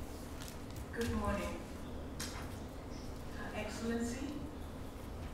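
Men and women murmur and talk quietly in a large room.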